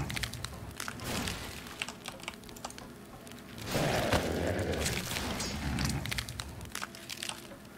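Rapid gunshots crack and clatter.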